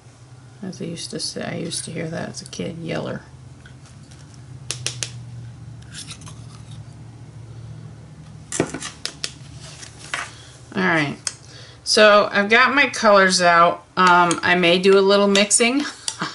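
A palette knife scrapes and smears thick paint.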